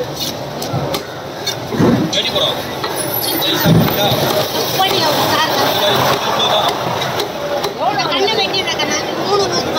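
A heavy blade chops through fish onto a wooden block with dull thuds.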